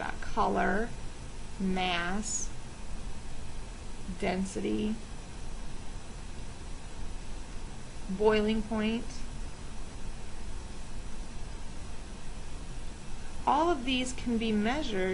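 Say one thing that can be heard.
A woman speaks calmly and slowly into a microphone, with long pauses.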